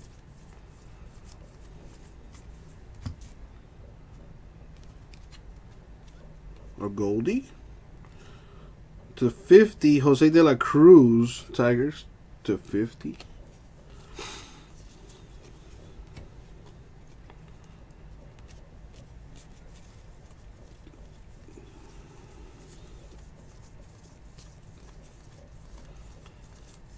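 Trading cards rustle softly as they are shuffled by hand.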